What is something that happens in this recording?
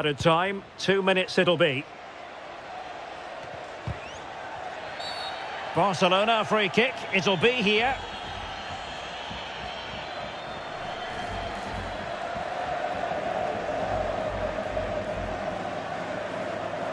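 A stadium crowd murmurs and cheers steadily, swelling slightly over time.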